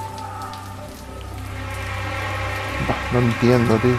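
A waterfall splashes and roars steadily.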